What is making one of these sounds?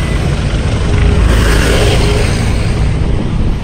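A vehicle passes close by with a rushing whoosh.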